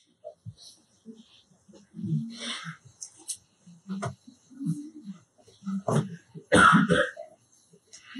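A middle-aged man speaks calmly into a microphone close by.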